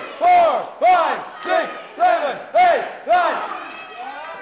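A crowd chants together in rhythmic shouts in an echoing hall.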